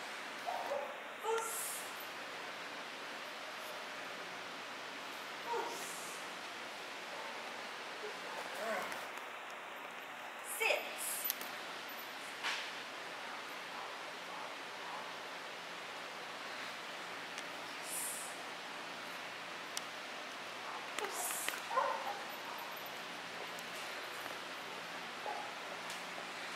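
A woman gives short commands to a dog in a large echoing hall.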